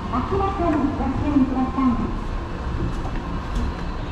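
An escalator hums and rattles steadily.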